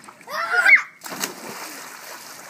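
A young boy jumps into water with a loud splash.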